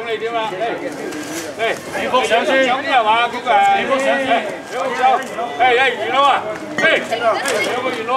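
A group of young men and women chatter and call out to each other.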